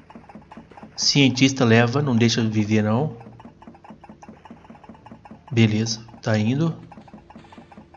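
A young man speaks with animation into a nearby microphone.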